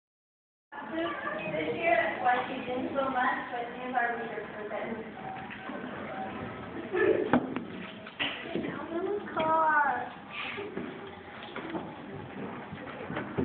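Young children sing together in an echoing hall.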